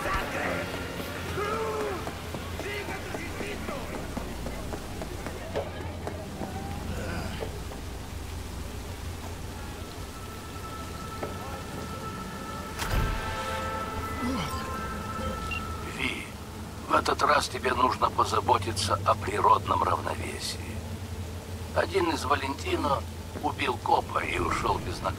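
Rain falls steadily.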